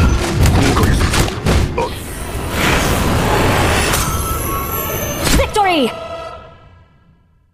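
Video game fight effects clash and boom loudly.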